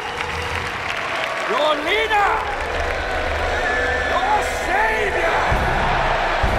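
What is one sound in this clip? A large crowd cheers and roars in an open arena.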